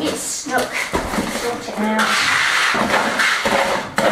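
Rubble scrapes and rattles into a bucket.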